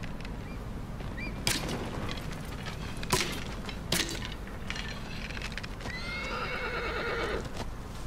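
A bowstring creaks as it is drawn.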